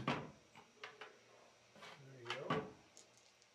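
Cards tap and slide softly on a table.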